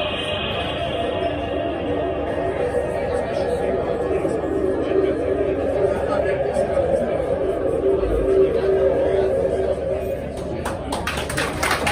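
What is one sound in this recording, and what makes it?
Loud electronic music plays through loudspeakers.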